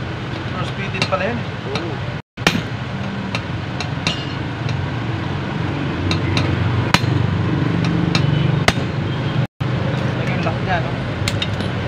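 Metal tools clink and click against a metal part.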